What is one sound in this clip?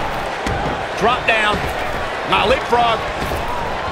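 Punches and kicks thud against a body.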